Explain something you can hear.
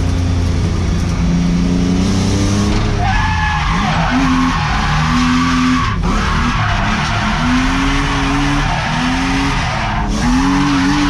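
A car engine roars loudly, revving up and down throughout.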